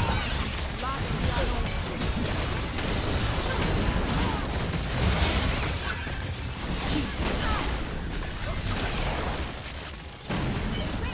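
Fantasy battle effects crackle and whoosh as spells clash.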